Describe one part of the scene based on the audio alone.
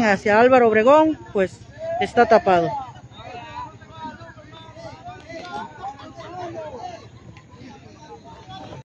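A crowd of people chatters in the open air.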